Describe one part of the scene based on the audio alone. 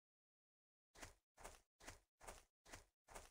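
Footsteps patter steadily on grass.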